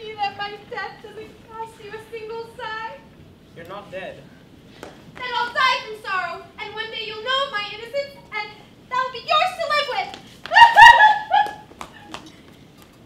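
A woman speaks with theatrical animation on a stage, heard from a distance.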